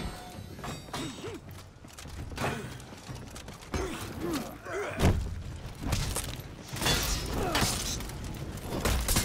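Warriors grunt and shout in combat.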